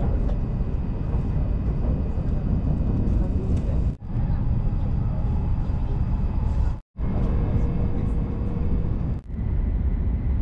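A train rumbles steadily at speed, heard from inside a carriage.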